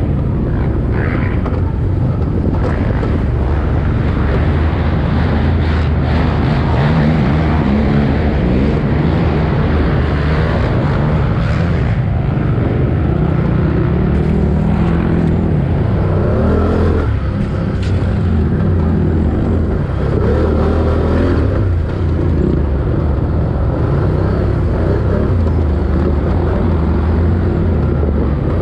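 A motorbike engine roars and revs up and down close by.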